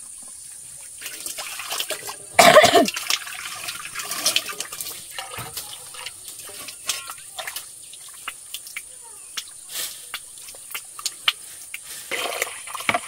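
Metal pans clatter and scrape on stone.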